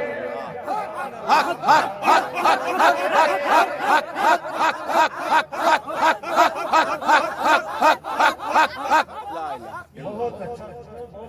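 A man chants rhythmically and with passion through a loudspeaker in a large echoing space.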